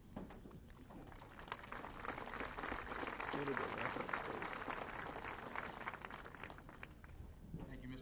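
Spectators clap and applaud outdoors.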